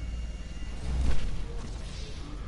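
A helicopter crashes with a loud explosion.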